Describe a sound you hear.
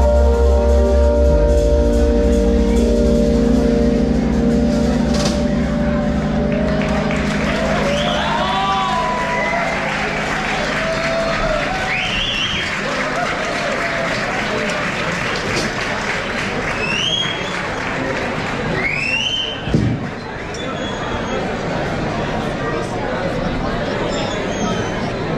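A live band plays loud music.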